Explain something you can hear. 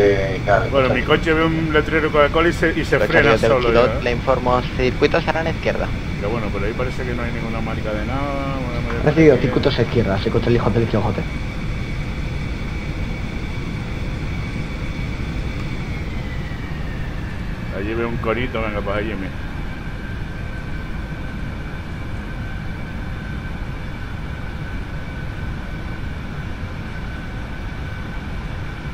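Jet engines hum steadily as an aircraft taxis.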